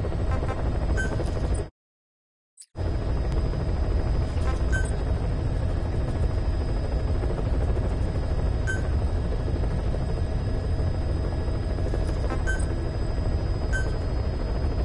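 Short electronic beeps chime now and then.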